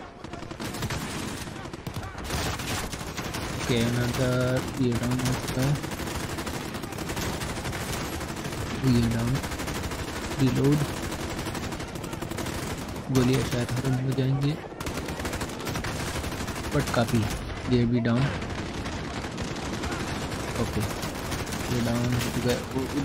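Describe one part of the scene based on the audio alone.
Rapid gunfire rattles loudly and repeatedly.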